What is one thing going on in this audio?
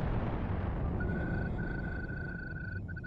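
An electronic console beeps with a steady tone.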